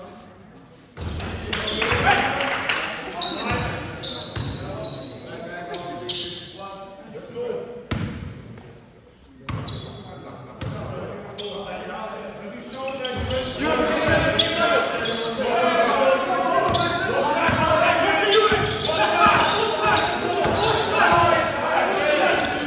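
Men shout and call out loudly across an echoing hall.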